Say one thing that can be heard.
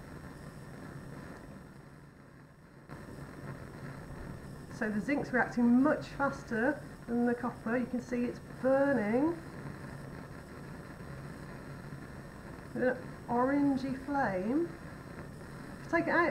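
A Bunsen burner flame roars softly.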